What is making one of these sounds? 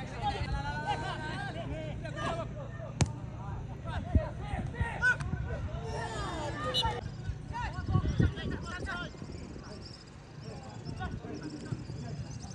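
Men shout across an open field.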